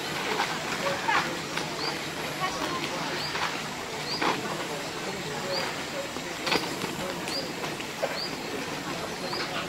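A woman talks quietly nearby outdoors.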